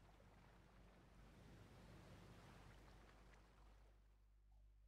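Sea water washes softly against a boat's hull.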